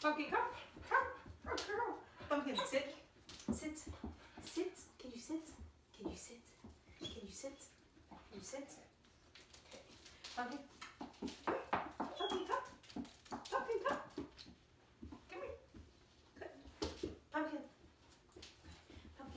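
A young woman talks to a dog in a lively, encouraging voice close by.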